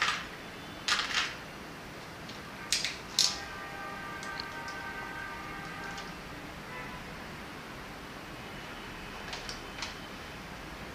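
A metal hand tool clicks and clatters as it is picked up and handled.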